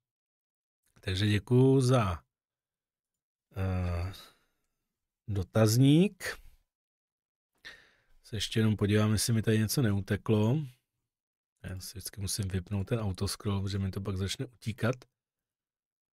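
A middle-aged man talks calmly into a close microphone, with pauses.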